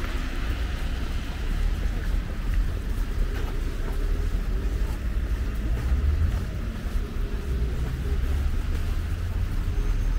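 Footsteps crunch on snow and slush.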